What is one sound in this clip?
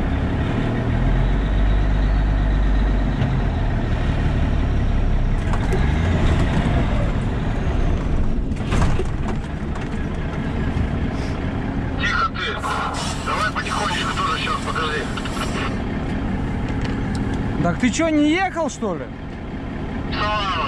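A truck engine rumbles steadily while driving.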